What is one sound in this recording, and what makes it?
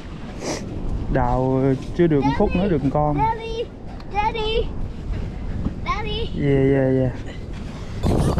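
A digging tube squelches into wet sand.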